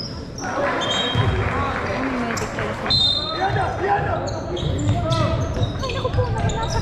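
Young players call out and shout to each other in a large echoing hall.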